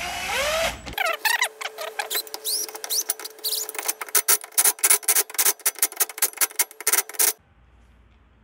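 An impact wrench rattles rapidly as it spins lug nuts.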